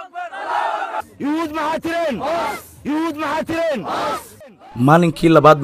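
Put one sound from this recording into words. A man shouts into a microphone.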